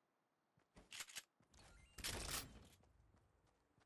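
Weapons clack and rattle as they are swapped in a video game.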